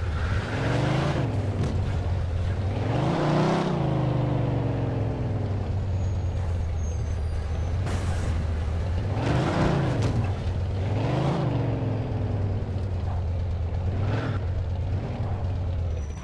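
A car engine roars, revving up and down as gears shift.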